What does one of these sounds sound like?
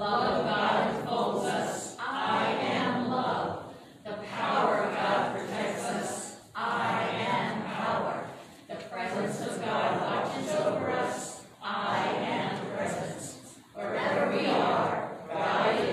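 An elderly man reads out slowly in phrases, heard from a distance in a room.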